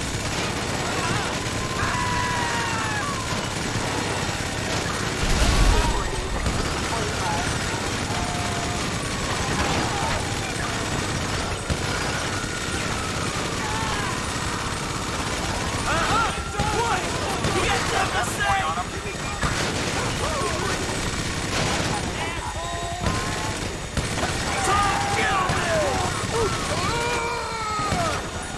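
Police car sirens wail.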